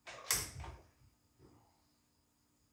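Small mechanical parts click and rattle under a screwdriver.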